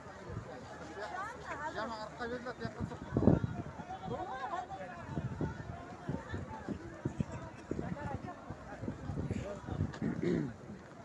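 Men and women in a crowd call out and shout nearby.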